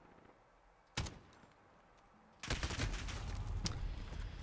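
Gunshots ring out close by.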